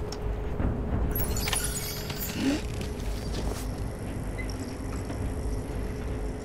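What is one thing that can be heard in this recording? Heavy footsteps thud slowly on pavement.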